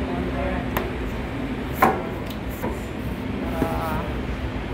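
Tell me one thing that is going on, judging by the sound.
Cloth-covered book boards knock and rustle as they are handled.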